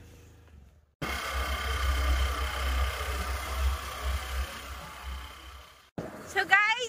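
A scooter engine hums steadily.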